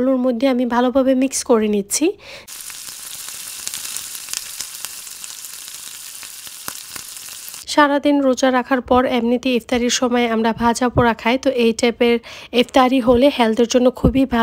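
A wooden spatula scrapes and stirs vegetables in a pot.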